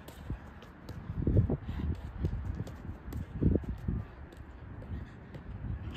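A football is tapped and rolled with quick light touches.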